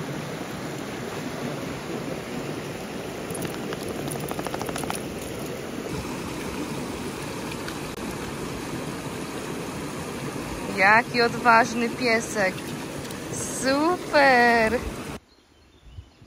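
A shallow stream rushes and splashes over rocks nearby.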